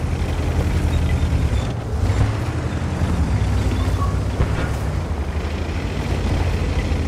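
A tank engine rumbles steadily as the tank drives across the ground.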